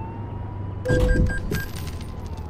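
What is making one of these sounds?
A truck thuds into the back of a bus.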